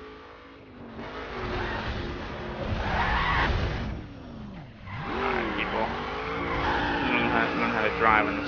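Tyres screech as a car skids and drifts.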